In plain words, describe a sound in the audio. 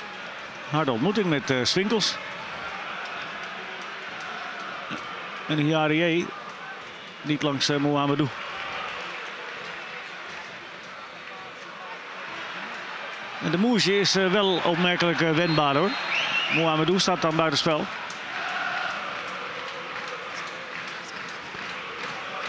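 A large stadium crowd murmurs and roars steadily in the open air.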